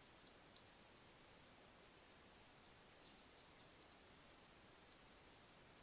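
A hedgehog chews and crunches food softly, with small clicking bites.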